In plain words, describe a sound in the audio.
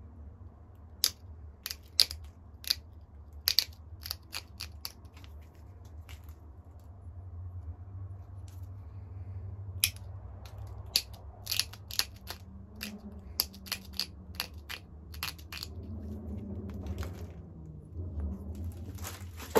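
Sharp little clicks and snaps come as flakes are pressed off a stone.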